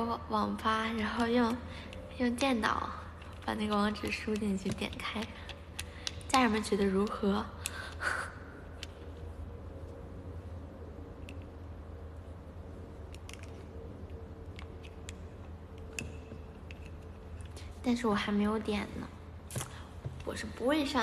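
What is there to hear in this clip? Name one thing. A young woman speaks playfully, close to a microphone.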